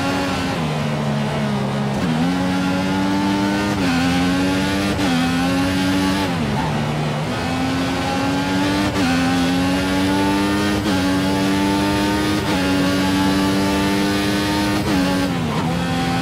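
A racing car engine screams, rising in pitch through each gear and dropping sharply at every gear change.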